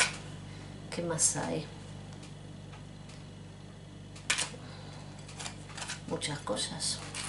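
A middle-aged woman speaks quietly and close by, in short phrases with pauses.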